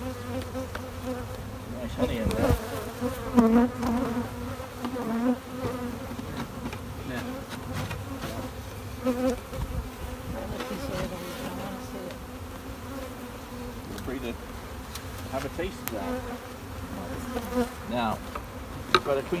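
Bees buzz steadily close by.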